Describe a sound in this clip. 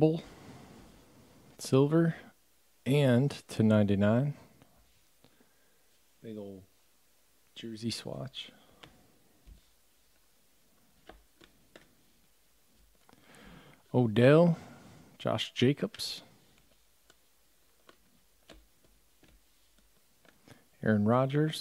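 Trading cards slide and flick against each other in the hands.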